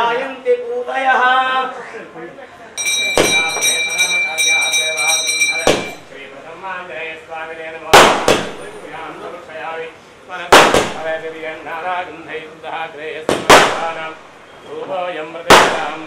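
A man chants prayers nearby.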